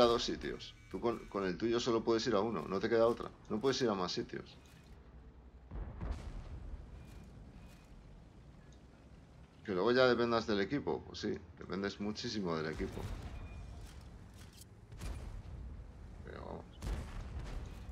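A tank cannon fires with a deep boom.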